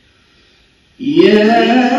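A young man begins to recite loudly and melodiously into a microphone.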